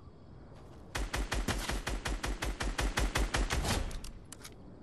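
An assault rifle fires in rapid bursts.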